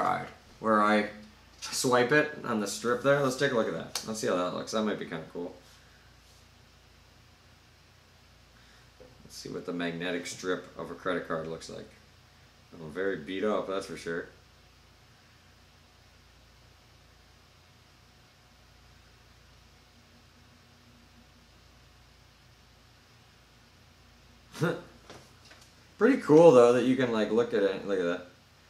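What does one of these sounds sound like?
A man talks calmly and close by, with pauses.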